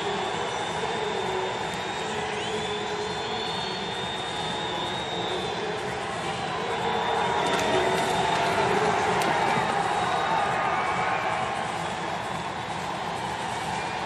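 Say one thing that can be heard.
A large stadium crowd cheers and roars steadily, swelling louder for a few seconds.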